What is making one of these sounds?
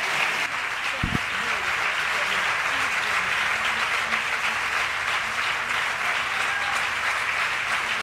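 A large crowd applauds steadily in a large hall.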